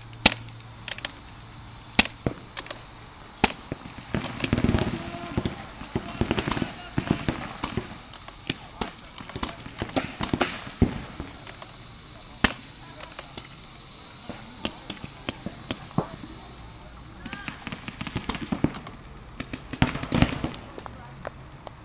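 Paintball markers fire in sharp popping shots, with the pops coming in quick bursts throughout.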